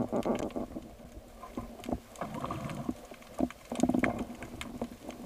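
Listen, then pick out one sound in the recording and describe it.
Muffled water swishes and bubbles around a diver moving underwater.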